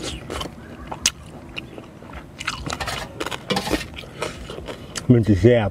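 A spoon scrapes and clinks against a metal plate.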